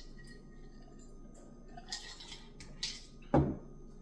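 A woman sips a drink and swallows close by.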